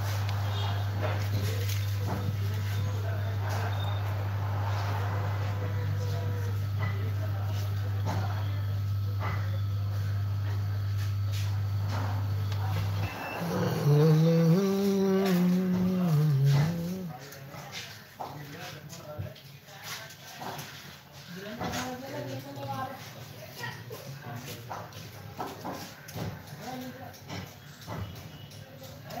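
Small electronic parts clink and tap as they are handled on a work surface.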